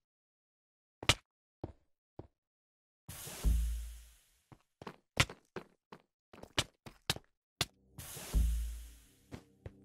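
A sword hits a player with sharp thuds.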